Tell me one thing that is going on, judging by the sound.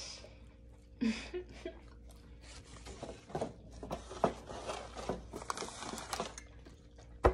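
A young woman bites and crunches a crisp snack.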